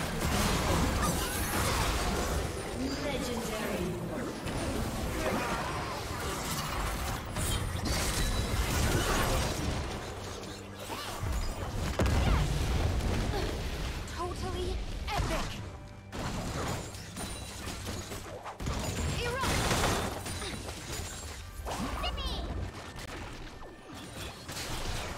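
Game spell effects and blows clash and crackle in a fast battle.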